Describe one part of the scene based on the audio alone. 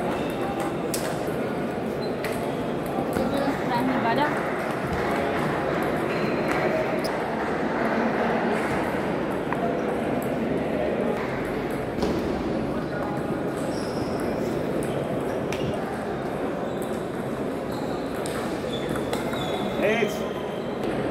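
A crowd chatters steadily throughout a large echoing hall.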